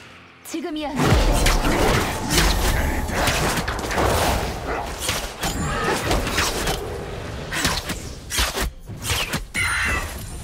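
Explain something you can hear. Heavy impacts thud and rumble during a fight.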